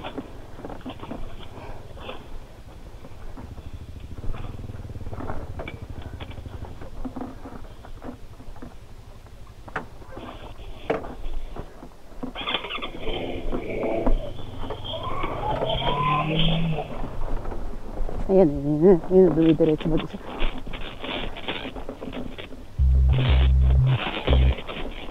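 Tyres crunch and bump over a rough dirt track.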